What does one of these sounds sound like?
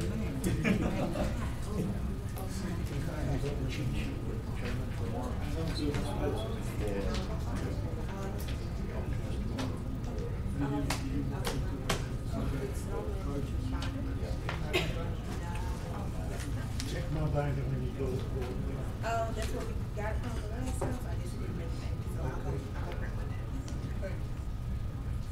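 Several men and women talk quietly among themselves, a little distance off.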